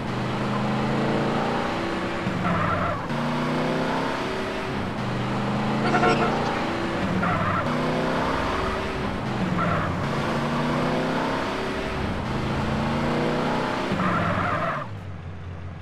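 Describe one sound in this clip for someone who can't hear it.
A truck engine revs up again and again as it shifts through its gears.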